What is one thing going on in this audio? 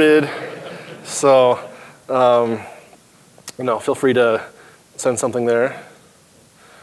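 A man talks with animation through a microphone in an echoing hall.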